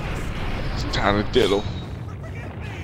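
A man screams in fear.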